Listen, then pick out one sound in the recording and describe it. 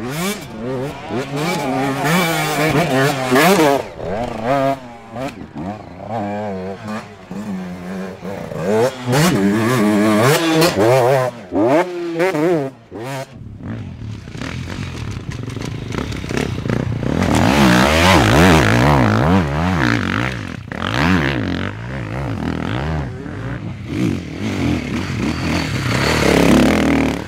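Dirt bike engines rev hard and whine up and down close by.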